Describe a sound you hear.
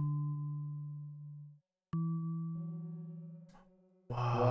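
Wind chimes ring with clear, fading tones.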